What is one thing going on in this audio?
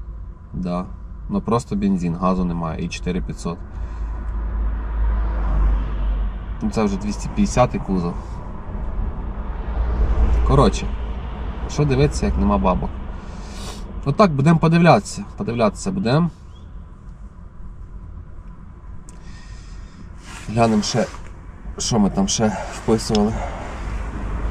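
A man talks casually close by, in bursts with pauses.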